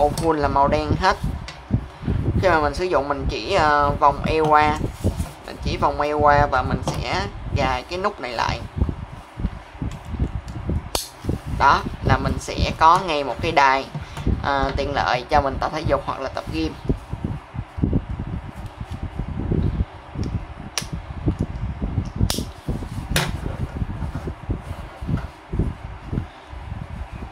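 Fabric rustles and scrapes as hands handle a strap.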